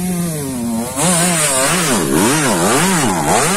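A dirt bike engine revs up and down hard as it climbs.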